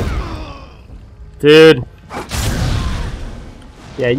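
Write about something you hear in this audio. A sword clashes against a shield.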